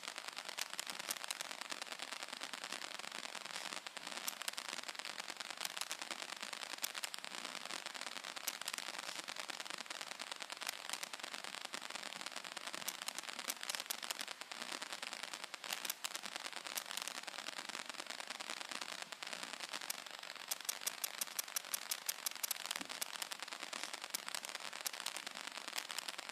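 Fabric rustles and scrapes right against the microphone.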